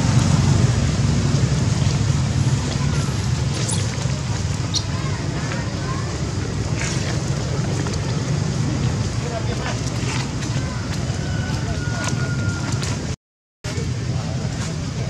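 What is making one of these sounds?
A baby monkey squeaks and whimpers.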